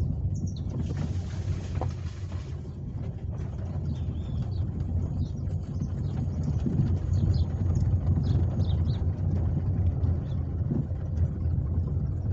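A car engine hums with a low rumble from inside the car.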